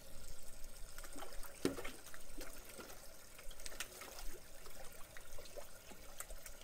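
Water trickles steadily from a pipe into a tank.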